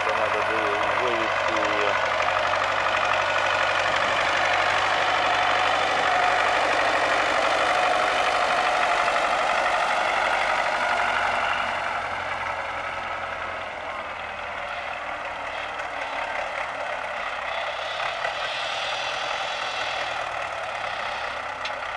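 A tractor engine runs and rumbles nearby.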